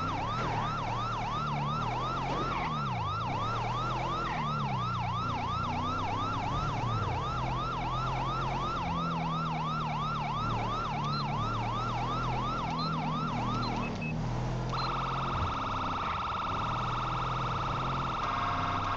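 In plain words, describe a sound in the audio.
A car engine hums and roars at speed.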